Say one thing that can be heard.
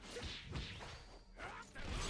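An energy blast crackles and booms.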